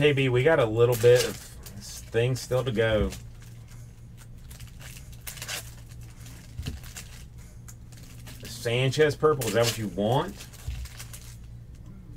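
Plastic card wrappers crinkle and rustle as hands tear them open.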